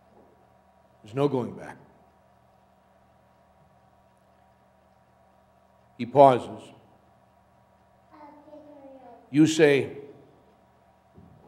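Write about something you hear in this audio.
An elderly man speaks slowly and solemnly into a microphone, with long pauses, in an echoing hall.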